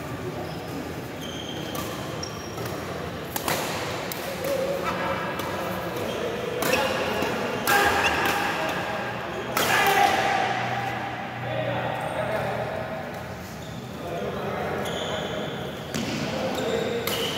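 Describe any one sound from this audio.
Shuttlecocks are struck with rackets, with sharp pops echoing in a large hall.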